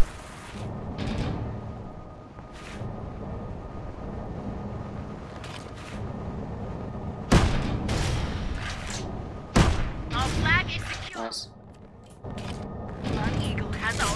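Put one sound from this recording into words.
Footsteps thud quickly on sand.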